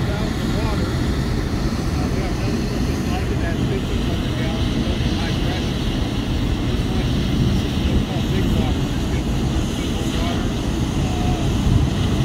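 A large fire roars in the distance.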